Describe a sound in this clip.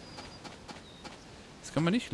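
Footsteps tap lightly on sandy ground.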